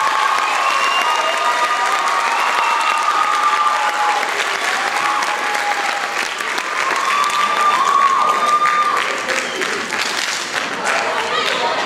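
A large male choir sings together in an echoing hall.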